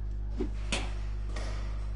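A bat cracks against a baseball.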